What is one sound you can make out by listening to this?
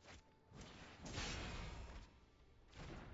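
A fiery whoosh swells and fades.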